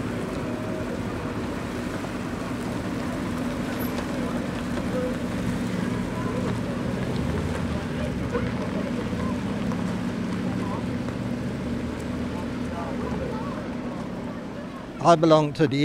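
A diesel engine rumbles steadily as a vehicle drives slowly away.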